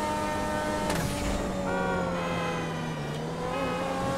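A car brakes and slows, its engine pitch falling.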